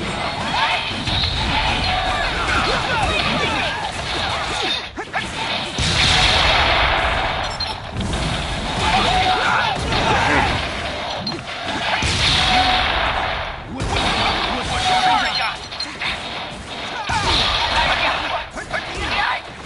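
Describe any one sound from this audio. Fighting sound effects whoosh and thud in quick bursts.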